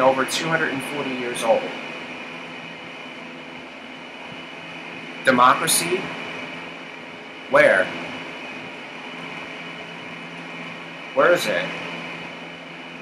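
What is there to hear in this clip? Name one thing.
A young man speaks calmly and close by, in short bursts with long pauses, heard through a computer microphone.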